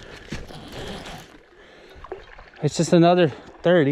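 A fishing lure splashes into the water.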